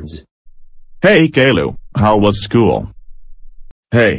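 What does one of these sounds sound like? A man speaks in a flat, synthetic voice.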